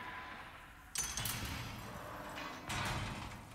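A heavy iron gate unlocks with a metallic clank.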